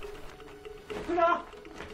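A woman calls out loudly.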